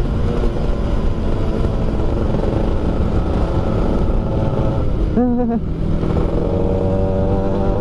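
A scooter engine hums steadily up close.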